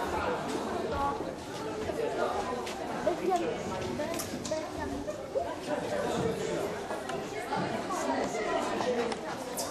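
A crowd of young people chatter in a large echoing hall.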